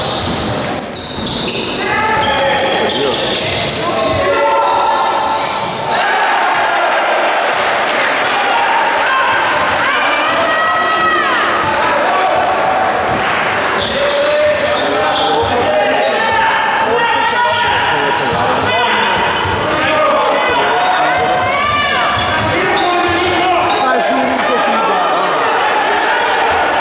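Basketball shoes squeak on a hardwood court in an echoing indoor hall.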